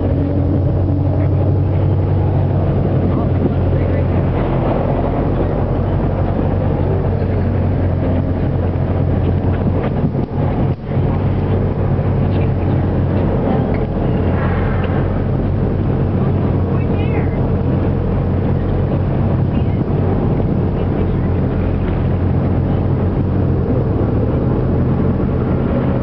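Waves wash and splash on open water.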